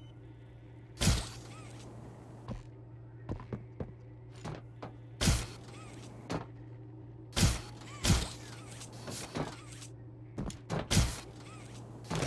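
A palm slaps onto a scanner panel with a heavy thud.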